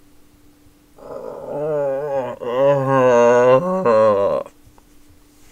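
A young man cries out loudly in dismay, close to a microphone.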